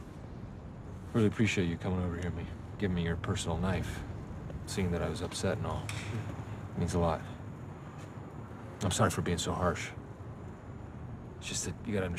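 A middle-aged man talks quietly and earnestly up close.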